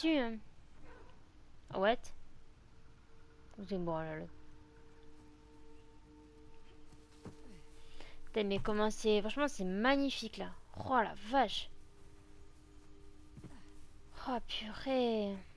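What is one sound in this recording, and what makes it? A woman talks with animation into a microphone.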